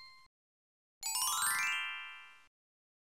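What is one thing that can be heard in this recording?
A sparkling chime rings out in a quick rising run.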